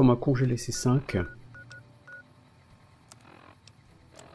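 A game menu gives short electronic beeps.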